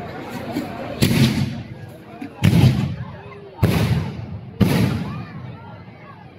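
Fireworks burst with loud booms overhead.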